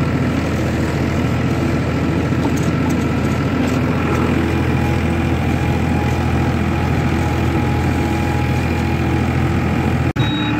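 A rotary tiller churns through dry soil.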